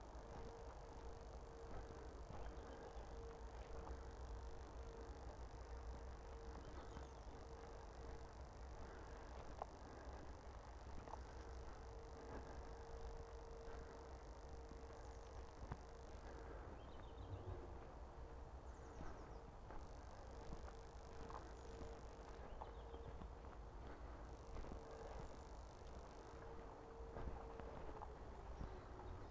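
A small drone's motors hum with a steady whine close by.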